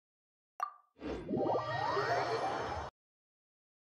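A magical chime swells as a menu opens.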